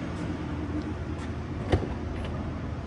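A car door handle clicks as a door opens.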